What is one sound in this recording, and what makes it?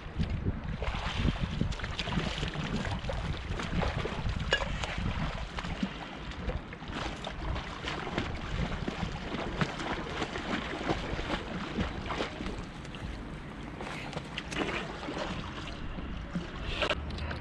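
Water splashes as a swimmer moves about close by.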